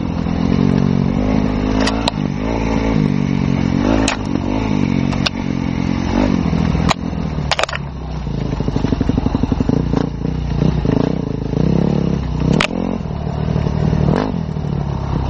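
Tyres crunch and bump over a rough dirt track.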